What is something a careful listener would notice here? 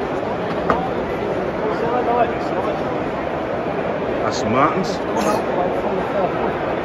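A crowd of men and women chatter all around in a large echoing hall.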